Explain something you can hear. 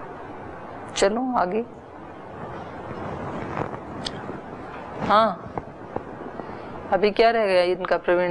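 A middle-aged woman speaks calmly into a microphone.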